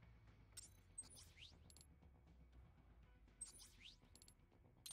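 Quick rising electronic swooshes sound.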